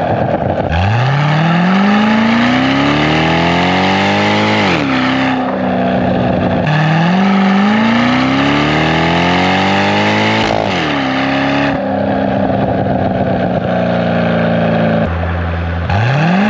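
A motorcycle engine revs hard, climbing through the gears and dropping between shifts.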